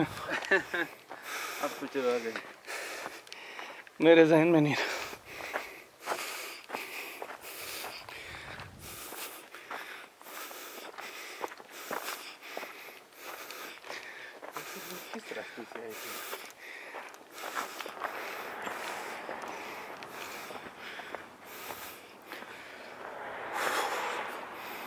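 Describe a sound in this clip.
Footsteps crunch steadily on loose gravel and stones.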